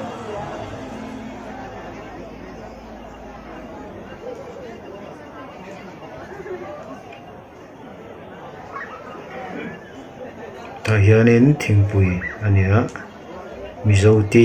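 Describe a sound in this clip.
Many people chatter in a busy indoor space.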